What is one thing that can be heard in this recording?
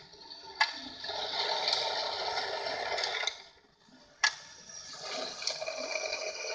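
Small tin toy cars rattle and whir along metal ramps.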